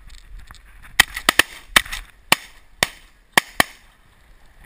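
Shotguns fire several loud blasts in quick succession.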